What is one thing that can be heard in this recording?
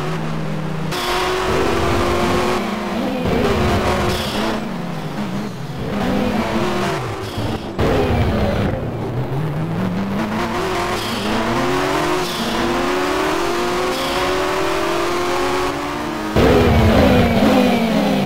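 A racing car engine whines loudly, rising and falling in pitch as the car shifts gears.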